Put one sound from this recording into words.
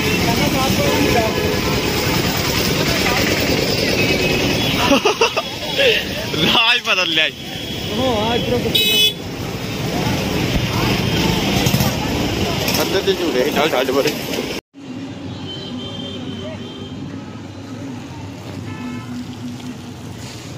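A scooter engine hums close by.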